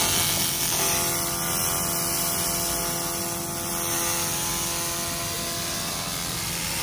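A laser cleaner hisses and crackles steadily as it strips a metal sheet.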